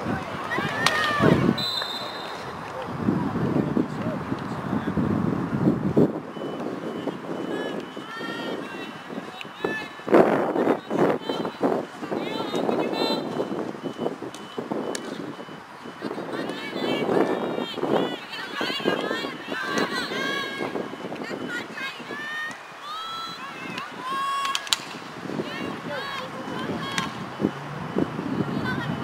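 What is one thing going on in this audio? A hockey stick smacks a ball with a sharp crack.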